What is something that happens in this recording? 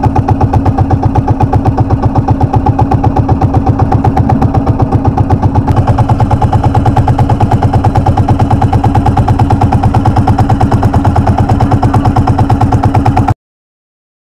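A boat engine chugs loudly and steadily close by.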